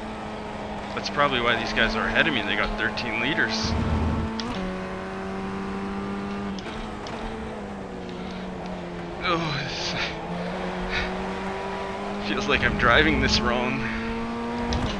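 Tyres screech and squeal through corners.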